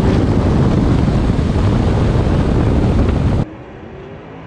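Wind and road noise roar past a fast-moving vehicle.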